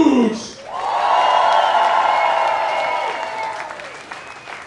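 A crowd cheers and sings along loudly in a large hall.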